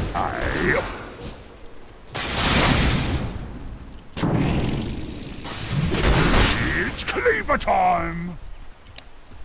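Magical spell effects whoosh and crackle in bursts.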